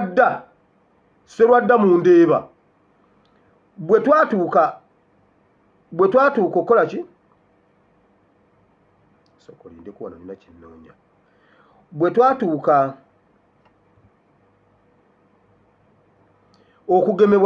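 A man speaks close to the microphone in short, deliberate phrases with pauses.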